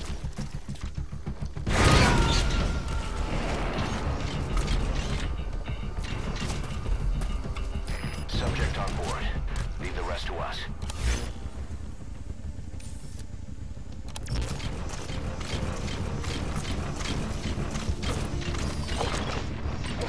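A walking machine clanks with heavy, regular steps.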